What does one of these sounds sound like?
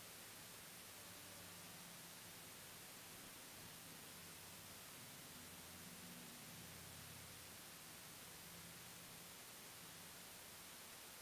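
A man prays quietly in a low voice, heard at a distance.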